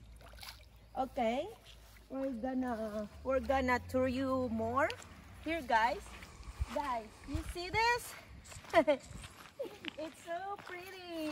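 A young girl talks excitedly.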